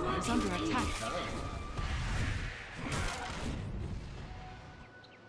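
Magical blasts and clashing weapons crash loudly in a fight.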